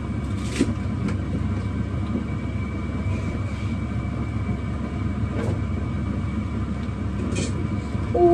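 A spatula scrapes and stirs in a pot.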